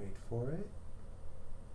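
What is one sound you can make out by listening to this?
A man speaks a brief word close to a microphone.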